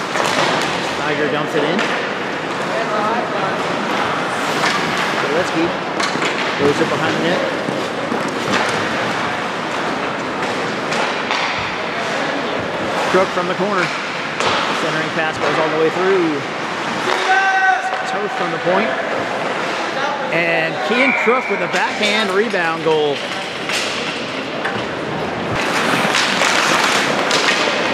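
Hockey sticks clack against the puck and each other.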